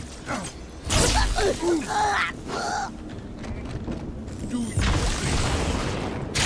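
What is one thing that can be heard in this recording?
An energy sword hums and whooshes as it swings.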